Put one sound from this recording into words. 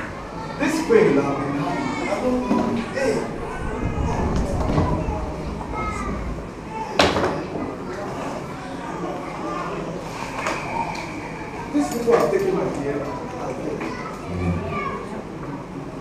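A man preaches with animation through a loudspeaker in a room with some echo.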